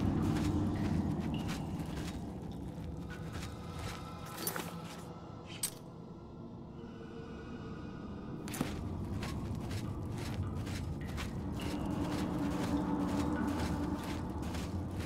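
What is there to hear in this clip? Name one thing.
Footsteps tread on stone in an echoing passage.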